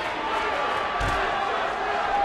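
A heavy body thuds onto a wrestling mat.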